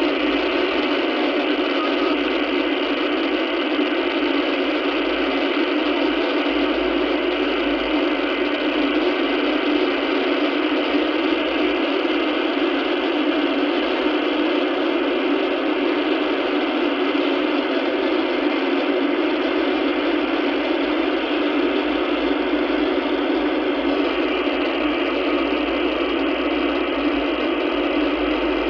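A radio receiver hisses with steady static from its speaker.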